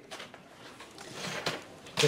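A typewriter clacks briefly.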